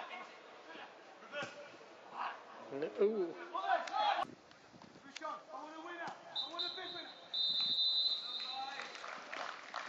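Men shout across an outdoor football pitch.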